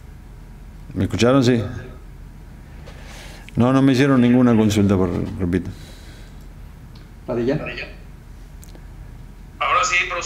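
A middle-aged man speaks calmly into a microphone, in short bursts with pauses.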